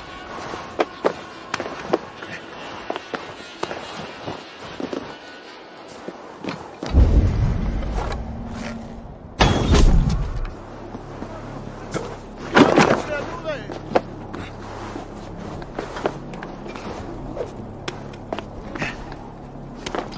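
Hands and feet scrape on stone as someone climbs.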